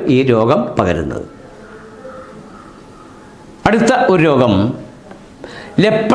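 An elderly man speaks calmly and clearly into a nearby microphone, pausing between phrases.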